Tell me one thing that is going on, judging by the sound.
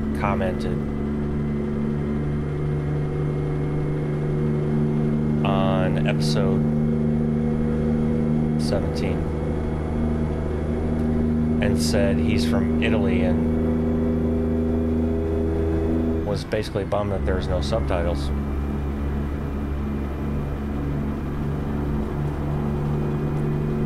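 A truck engine drones steadily, with a brief dip as it changes gear.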